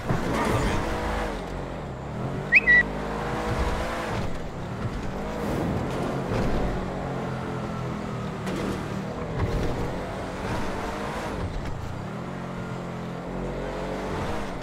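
A car engine roars at high speed, revving up and down.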